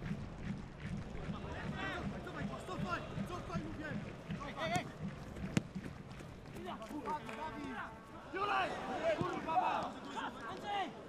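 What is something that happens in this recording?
A large crowd chants and sings in a stadium, outdoors.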